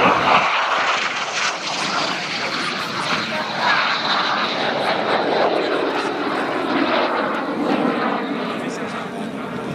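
A jet engine roars loudly as a plane streaks low past and climbs away, its rumble slowly sinking in pitch.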